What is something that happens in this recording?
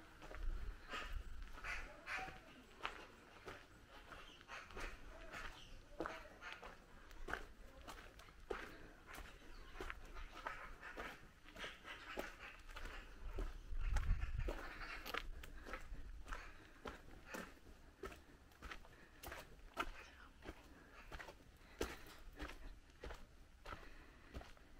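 Footsteps crunch steadily on a dirt path outdoors.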